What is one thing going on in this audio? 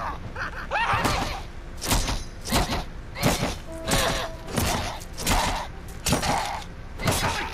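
Heavy blows land again and again in a steady rhythm.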